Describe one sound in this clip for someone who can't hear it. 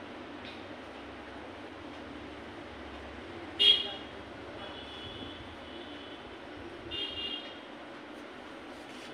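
Fabric rustles softly.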